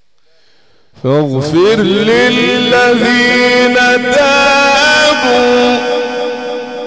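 An elderly man chants in a long, melodic, sustained voice through a microphone, heard loud and close.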